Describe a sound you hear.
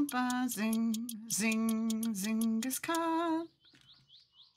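A young woman sings into a close microphone.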